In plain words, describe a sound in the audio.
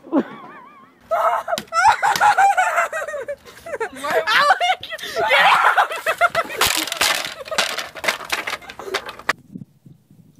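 A young woman shouts and laughs excitedly nearby.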